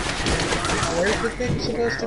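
A video game spell bursts with a crackling blast.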